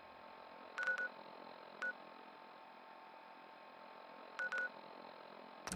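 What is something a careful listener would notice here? Short electronic menu beeps chirp now and then.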